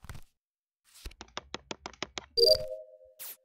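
A card slides through a reader with a fast rattle.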